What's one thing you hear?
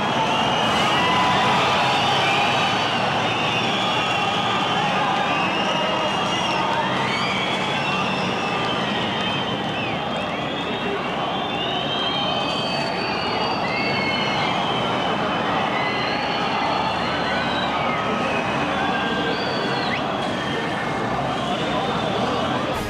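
A large crowd shouts and whistles outdoors.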